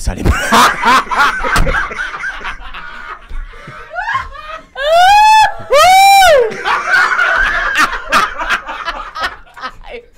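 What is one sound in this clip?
A man laughs loudly and heartily close to a microphone.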